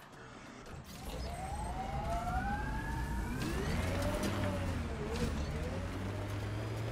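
A vehicle engine roars and revs up as it drives over rough ground.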